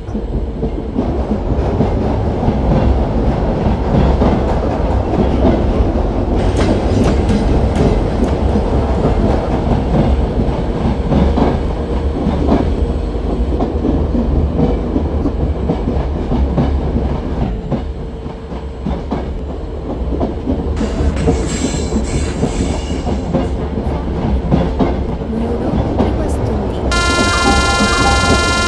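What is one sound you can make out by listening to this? Wheels clatter over rail joints.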